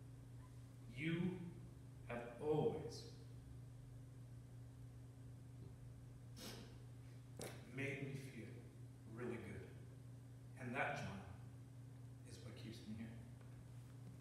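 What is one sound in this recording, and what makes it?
An elderly man speaks slowly with long pauses through a microphone in an echoing room.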